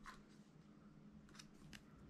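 A small plastic part clicks as it is fitted together.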